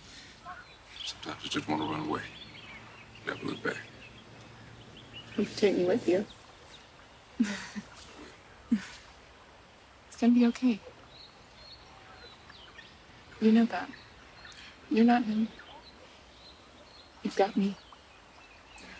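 A young woman speaks softly and close by, in short phrases.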